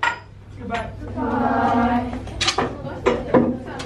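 A group of girls says goodbye together.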